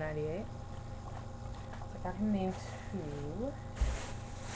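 A young woman speaks close by, her voice sliding up and down.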